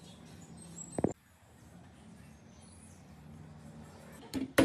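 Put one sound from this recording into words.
Metal parts clink as a bicycle chainring is fitted onto a crank.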